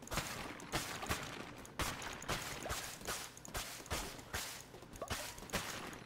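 Quick sword swipes and hits land in rapid succession.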